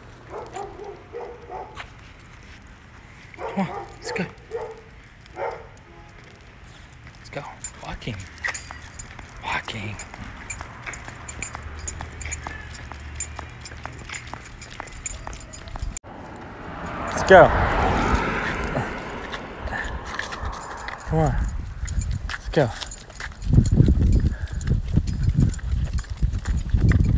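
A dog's claws click on pavement.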